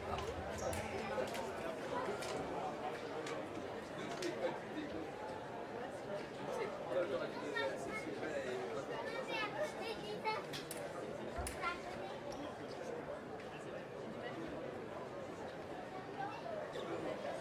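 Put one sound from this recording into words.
Fencing blades clink and tap against each other.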